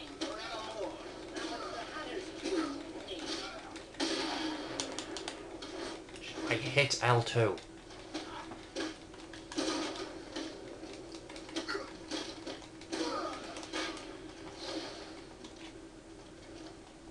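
Punches and kicks land with heavy thuds in a game brawl.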